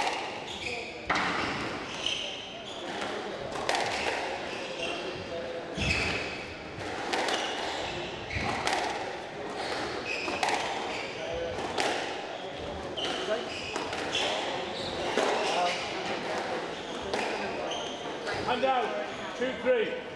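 A squash ball smacks sharply off rackets and walls in a quick rally.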